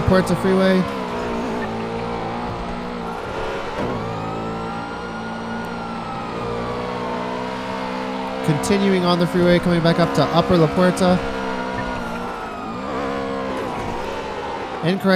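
A car engine hums steadily as it speeds along.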